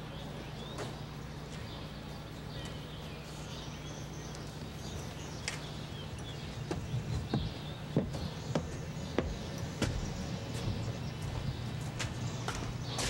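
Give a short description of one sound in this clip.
Footsteps walk along a path outdoors.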